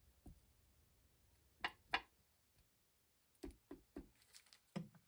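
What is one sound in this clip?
A foam applicator taps softly on paper.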